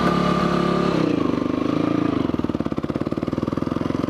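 A motorcycle engine rises in pitch as the bike pulls away.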